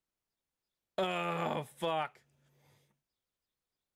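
A man speaks briefly and animatedly into a microphone.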